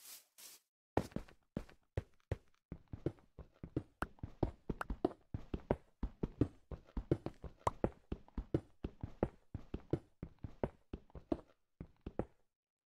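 A pickaxe chips rapidly at stone, with blocks cracking and breaking.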